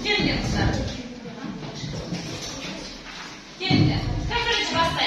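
A teenage girl speaks clearly nearby in a room with slight echo.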